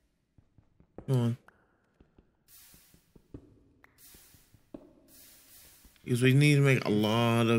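A young man talks loudly and with animation into a close microphone.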